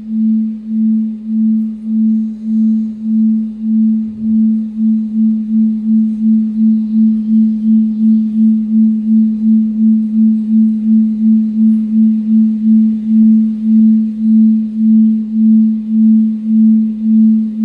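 A low electronic tone pulses steadily from loudspeakers, speeding up and then slowing again.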